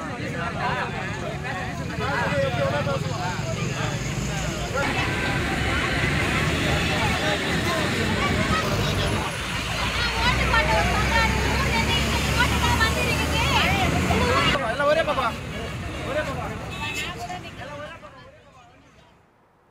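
A crowd of men and women talk and shout excitedly outdoors.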